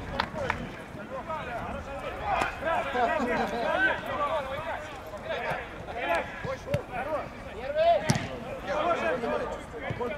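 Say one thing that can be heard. Young male players shout and call to each other outdoors.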